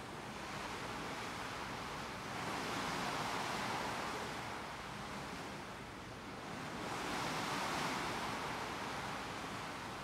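Water rushes and splashes against a ship's bow.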